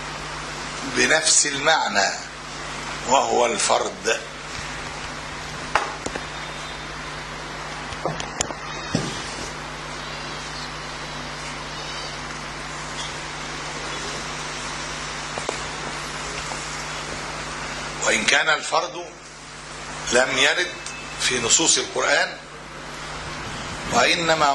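An elderly man speaks calmly into a microphone, in short bursts with long pauses.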